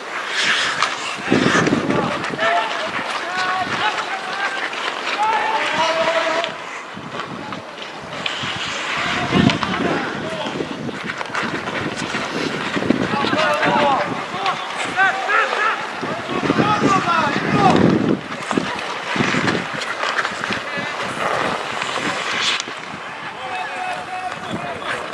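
Players shout to each other across an open outdoor rink.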